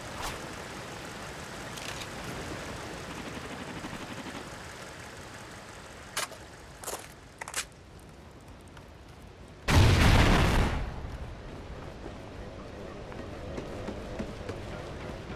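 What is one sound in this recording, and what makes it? Footsteps crunch steadily on gravel and dirt.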